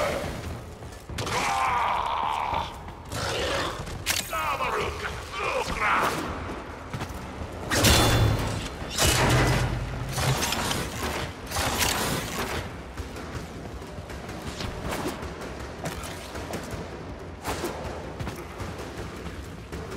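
Gunfire and energy blasts crackle in quick bursts.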